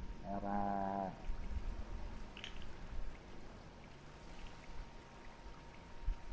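Waves churn and splash around a small submarine as it surfaces.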